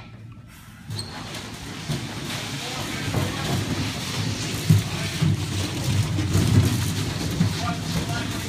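A hose scrapes along a concrete floor as it is dragged.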